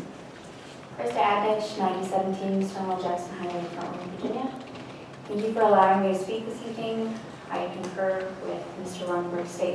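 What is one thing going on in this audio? A young woman speaks calmly into a microphone in a large room.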